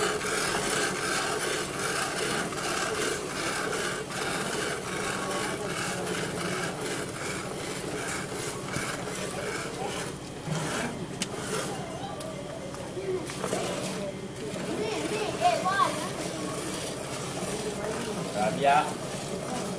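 Milk squirts rhythmically into a metal pail.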